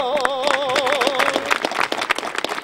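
An elderly man sings loudly with a trembling voice.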